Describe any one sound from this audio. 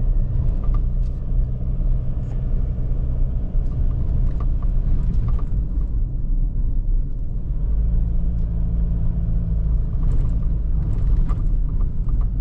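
Tyres rumble and crunch over a bumpy dirt road.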